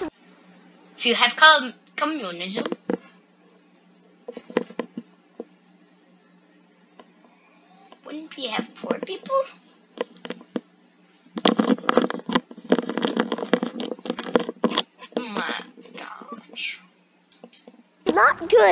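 A young boy talks close by with animation.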